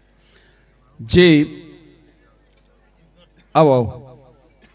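A middle-aged man sings out loudly through a microphone in two bursts.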